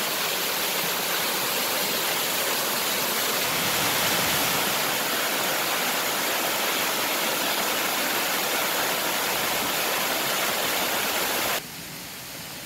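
A waterfall splashes and rushes loudly over rocks.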